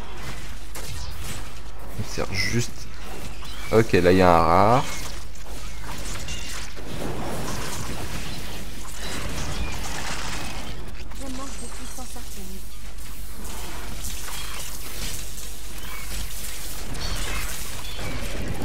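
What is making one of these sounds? Magic spells crackle and burst in quick succession.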